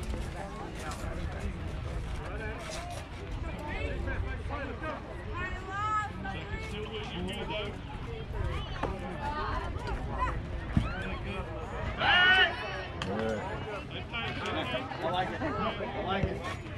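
A crowd of children and adults chatters and calls out nearby outdoors.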